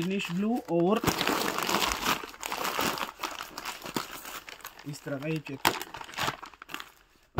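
Plastic wrapping rustles and crinkles as it is handled.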